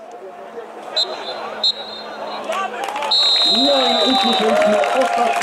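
A referee's whistle blows several sharp blasts.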